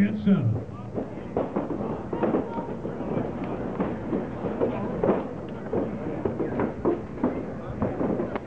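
Punches thud against padded mitts.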